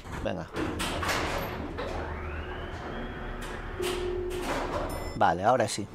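An elevator hums as it moves between floors.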